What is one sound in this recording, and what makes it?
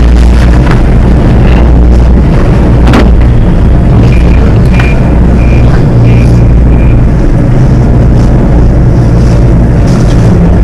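A cable car's machinery hums and rumbles steadily.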